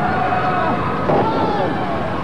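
A loud slap lands on bare skin.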